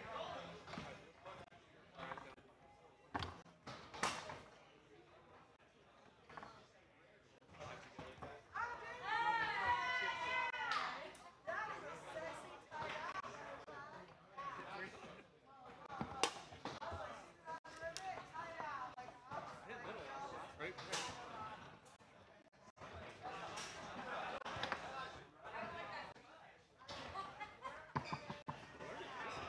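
Foosball rods clack and a ball knocks sharply against plastic figures.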